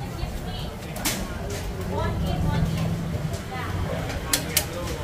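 Chopsticks clatter against a metal strainer.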